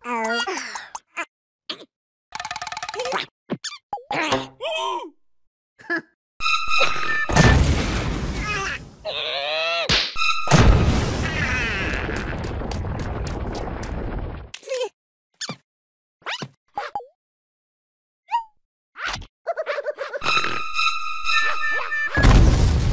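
Small cartoon creatures jabber and squeal excitedly in high voices.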